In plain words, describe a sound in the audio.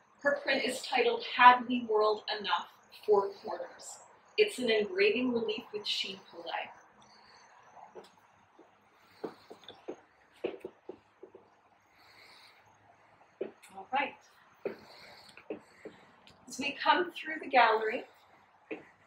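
A woman speaks calmly through a face mask, close by.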